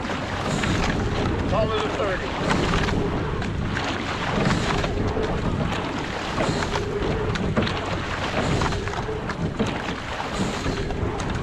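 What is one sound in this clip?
Water rushes along a moving boat's hull.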